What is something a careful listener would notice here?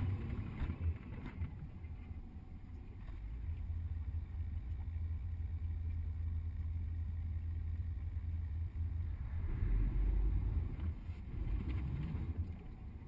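A vehicle engine hums steadily from close by.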